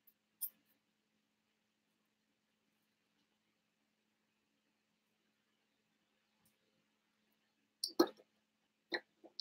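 Plastic toy bricks click and clatter on a wooden table.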